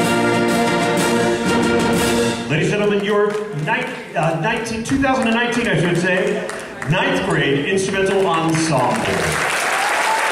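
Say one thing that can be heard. An orchestra and choir play and sing loudly in a large hall.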